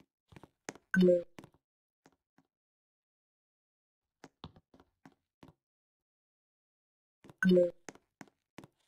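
A short springy boing sounds twice as a game character jumps.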